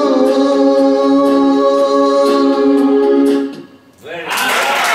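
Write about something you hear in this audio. A man sings a long held note into a microphone.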